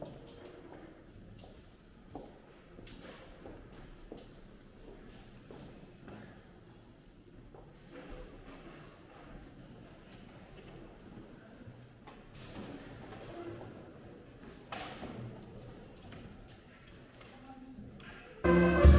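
A seated audience murmurs quietly.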